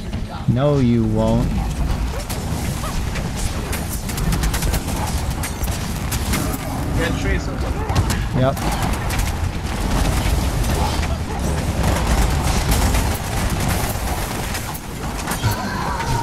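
Video game gunfire and blasts crackle and boom without a break.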